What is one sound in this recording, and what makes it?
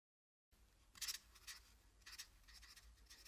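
A marker squeaks briefly across a board.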